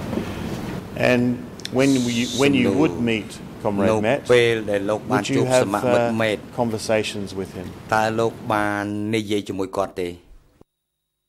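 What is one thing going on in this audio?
A middle-aged man speaks steadily and formally into a microphone.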